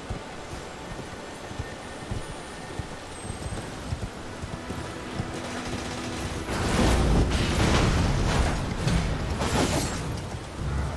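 A horse gallops with hooves clattering on stone.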